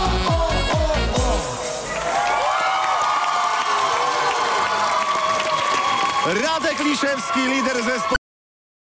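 A large crowd cheers and whistles loudly.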